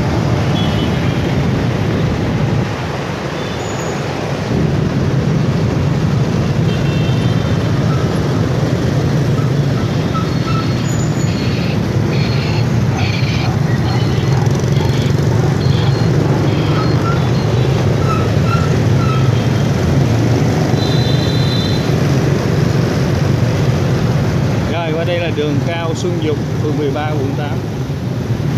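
Wind rumbles past outdoors.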